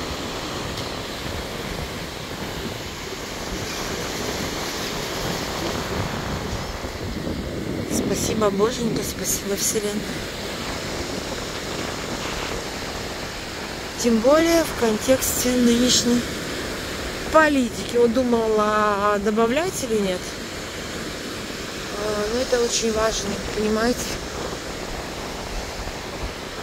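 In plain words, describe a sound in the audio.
Waves break and wash up on a shore, outdoors in a steady rush.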